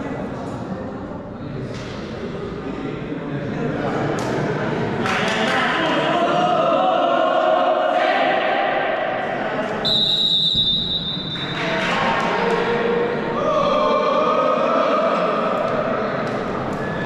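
A group of young men shout and cheer together in an echoing hall.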